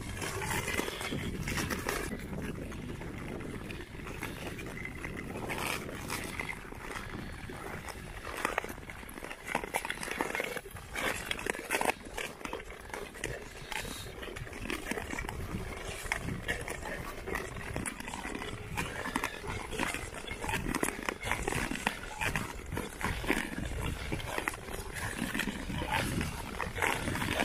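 Ice skates scrape and hiss across ice outdoors.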